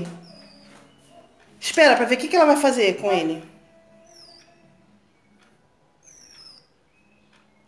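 A small bird chirps in short high whistles.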